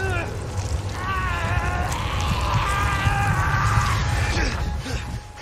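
A man cries out in anguish.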